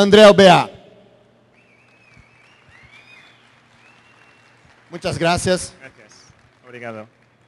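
A man speaks through a microphone in a large hall, in short bursts.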